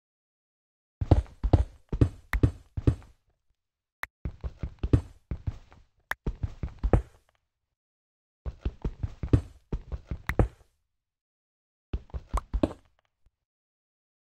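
Stone blocks crumble under repeated quick digging hits.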